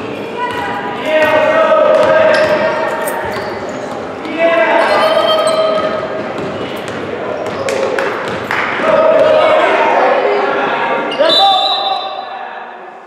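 Adults shout and cheer loudly in an echoing gym.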